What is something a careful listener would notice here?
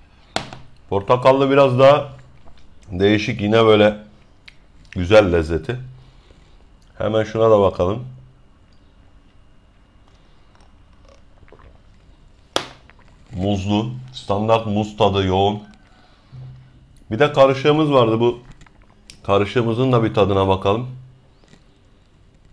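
A man speaks calmly into a close microphone, in short phrases with pauses.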